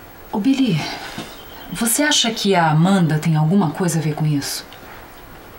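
A young woman speaks in a close, upset voice.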